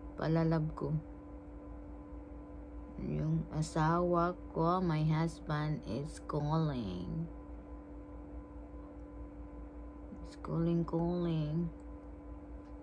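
A young woman talks calmly and close to a microphone, in short bursts.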